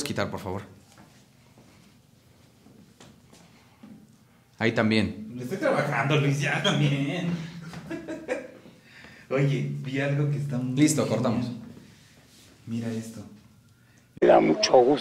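A young man talks with animation close by, in short bursts.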